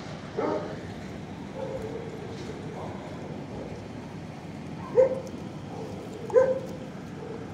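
A dog whines and yelps close by.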